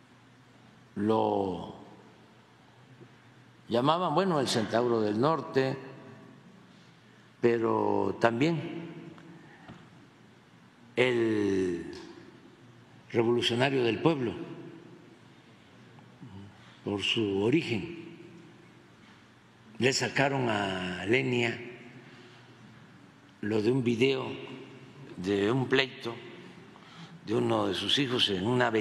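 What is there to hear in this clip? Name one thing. An elderly man speaks calmly into a microphone, in short phrases with pauses, in a large echoing room.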